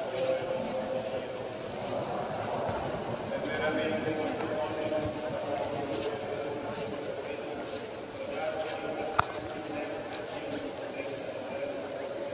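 A crowd murmurs with many voices echoing in a large hall.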